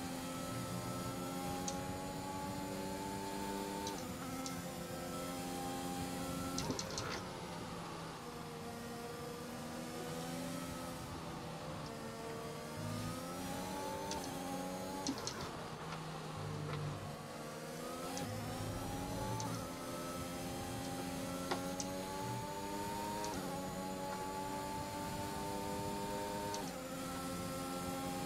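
A racing car engine whines loudly, rising and dropping in pitch as gears change.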